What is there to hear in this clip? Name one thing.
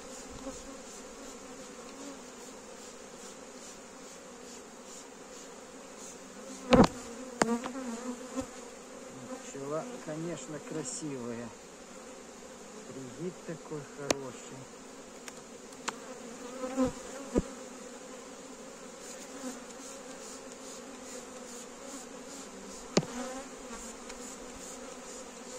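Bees buzz steadily around an open hive.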